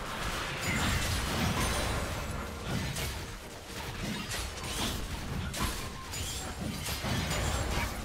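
Spell effects crackle and burst during a fast fight.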